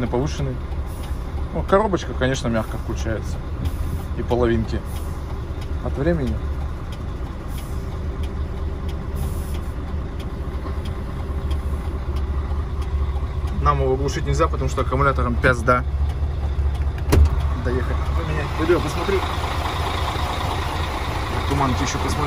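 A diesel engine idles with a steady low rumble.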